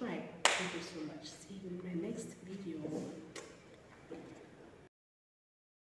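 A young woman talks with animation close to a microphone in a small echoing room.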